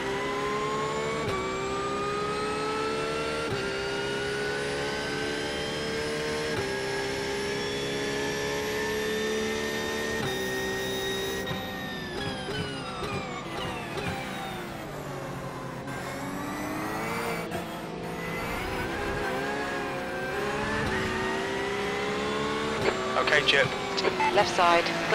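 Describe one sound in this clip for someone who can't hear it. A racing car engine roars and climbs in pitch, dropping briefly at each gear change.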